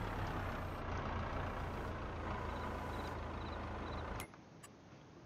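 An engine rumbles steadily.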